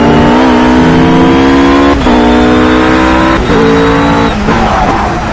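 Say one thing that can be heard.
A GT3 race car engine screams at full throttle with quick upshifts.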